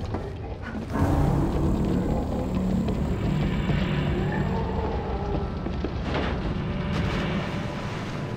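Flames roar loudly as a burning figure moves.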